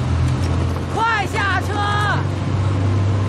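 A young man shouts urgently nearby.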